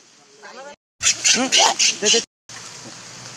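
A monkey squeals loudly in short bursts.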